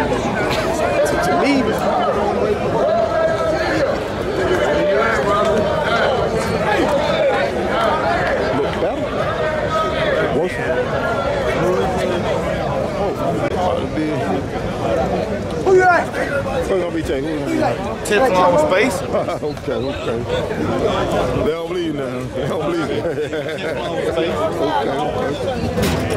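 A crowd of men and women chatter loudly all around, close by.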